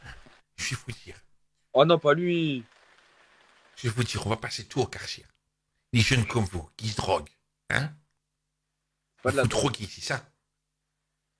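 A young man talks back over an online call.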